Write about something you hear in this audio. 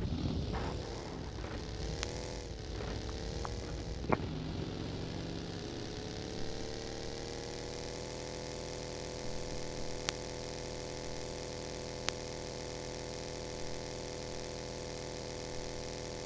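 A buggy engine revs and drones steadily.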